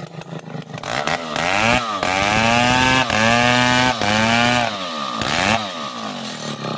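A chainsaw revs up and down.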